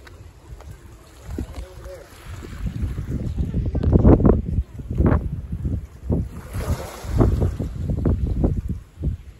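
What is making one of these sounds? Small waves wash gently against rocks below.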